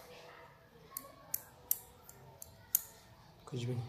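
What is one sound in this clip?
A nail clipper snaps sharply as it clips a fingernail.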